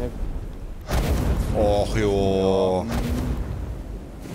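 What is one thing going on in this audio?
Magic blasts whoosh and crackle loudly.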